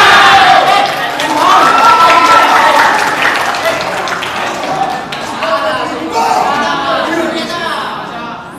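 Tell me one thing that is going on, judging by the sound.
A crowd of children chatters and calls out loudly in an echoing hall.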